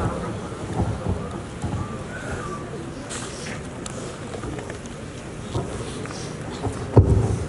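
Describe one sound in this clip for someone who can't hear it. A crowd of boys and men murmurs and chatters nearby, outdoors.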